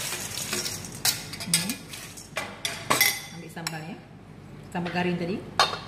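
Crisp chips clatter into a metal bowl.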